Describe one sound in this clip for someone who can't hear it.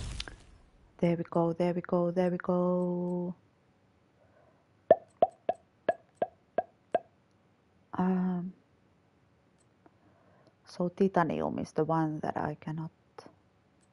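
Short musical tones chime as menu choices are made.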